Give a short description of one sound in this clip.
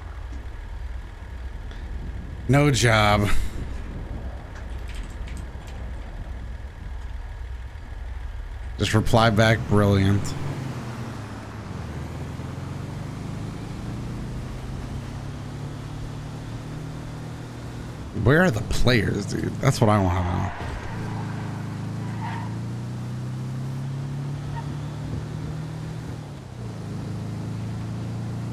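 A van engine hums steadily as the van drives along.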